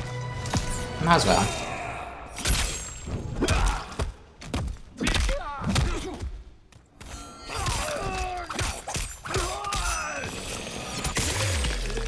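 A young woman exclaims and talks with animation close to a microphone.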